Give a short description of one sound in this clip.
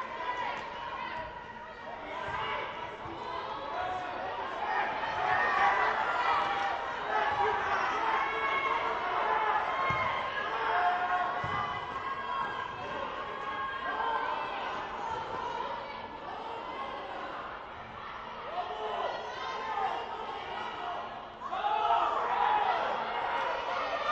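Young women shout to each other across a large echoing hall.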